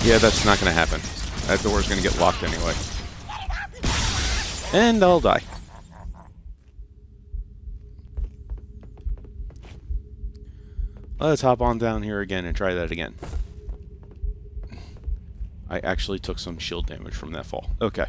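A man talks into a microphone with animation, close by.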